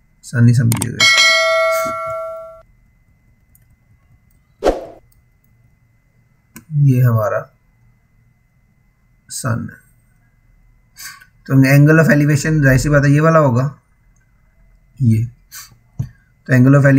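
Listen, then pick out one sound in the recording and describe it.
A man speaks calmly and explains, close to a microphone, with pauses.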